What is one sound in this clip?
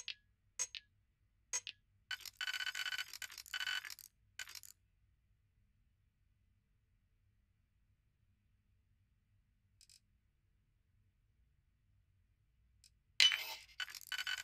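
Short electronic beeps and chirps sound as a digital lock dial turns.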